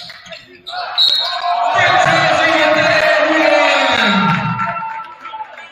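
Spectators cheer loudly.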